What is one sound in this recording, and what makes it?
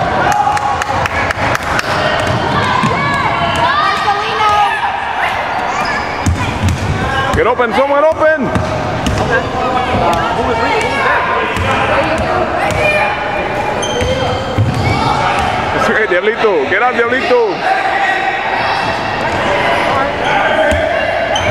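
Children shout and call out in a large echoing gym.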